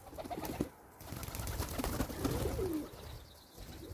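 A pigeon flaps its wings as it takes off.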